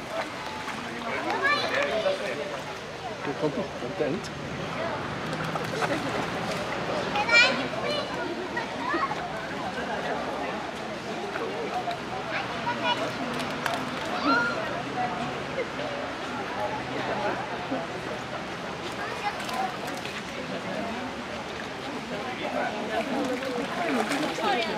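Several people chatter nearby outdoors.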